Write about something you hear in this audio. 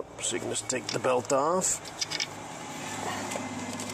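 Metal tools clink and scrape against engine parts.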